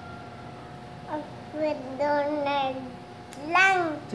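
A small child giggles.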